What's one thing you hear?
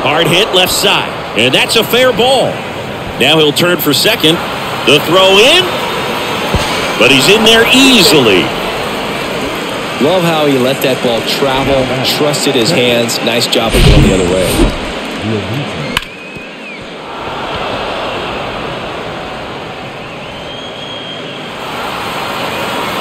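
A crowd murmurs in a large open ballpark.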